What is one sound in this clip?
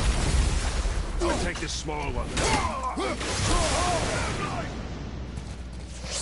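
Metal weapons clash and strike.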